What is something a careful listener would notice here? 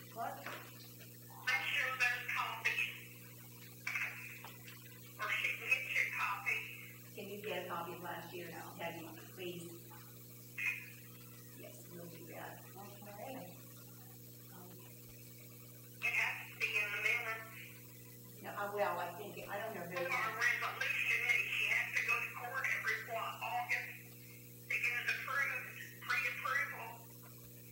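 A man speaks calmly in a small room, heard from a distance.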